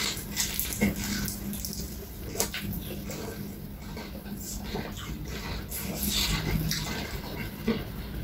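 A young man makes loud slurping and sucking sounds on a chicken bone.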